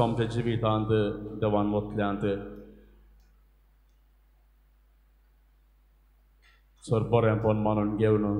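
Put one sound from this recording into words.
A man sings a slow chant through a microphone, with pauses.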